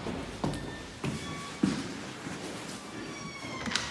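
A glass door clunks as it is pushed open.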